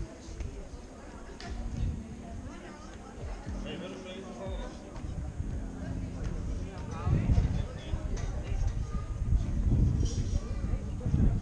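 Voices of people chatting are heard nearby outdoors.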